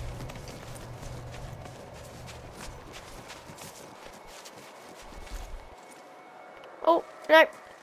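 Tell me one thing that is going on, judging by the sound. Footsteps crunch on snow.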